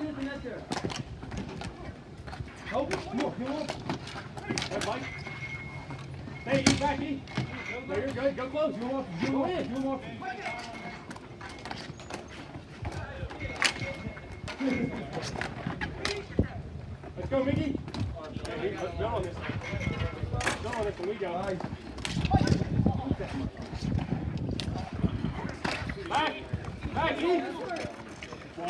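Hockey sticks clack against a ball and the rink surface.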